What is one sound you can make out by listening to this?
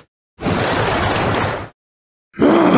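A bright magical whoosh rushes in and cuts off.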